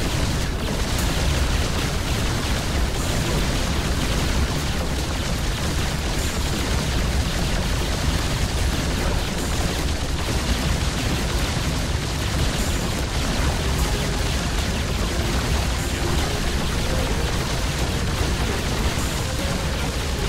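Gunfire and explosions clatter and boom in a busy battle.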